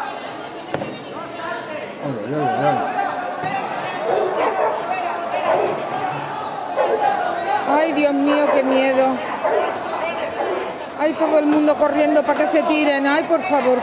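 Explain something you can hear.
Several men shout and argue loudly in the street below.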